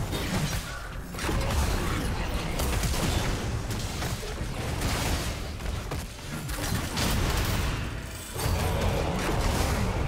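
Game spells blast and clash in quick bursts of fighting.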